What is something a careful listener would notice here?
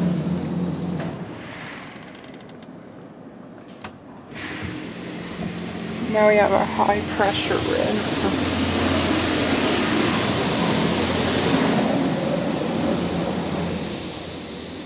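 Water sprays and drums against a car's windows and roof.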